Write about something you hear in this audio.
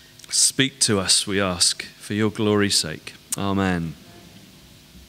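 A man sings loudly through a loudspeaker in a large echoing hall.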